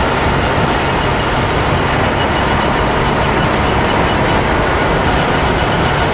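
A racing car engine roars loudly at high speed.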